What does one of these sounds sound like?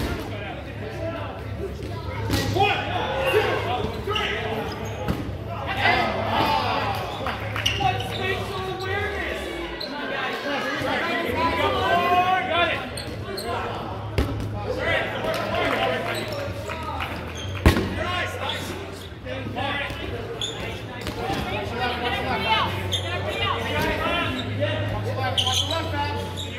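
Young men and women chatter and call out in a large echoing hall.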